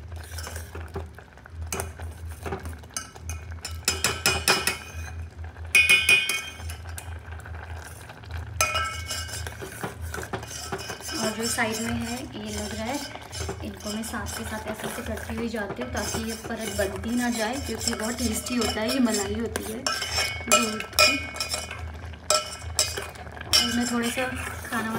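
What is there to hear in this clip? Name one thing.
A metal spoon clinks and scrapes against a metal pot.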